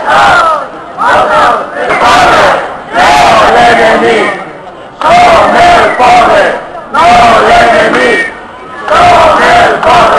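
A large crowd chants loudly and rhythmically outdoors.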